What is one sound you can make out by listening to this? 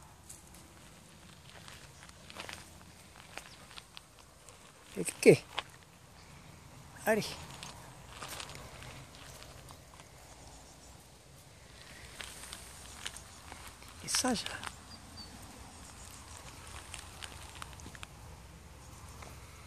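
A small dog's paws patter softly on gravel.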